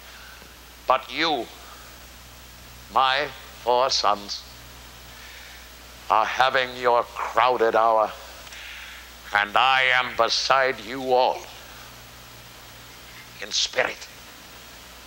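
An elderly man speaks with animation in bursts, in a large echoing hall.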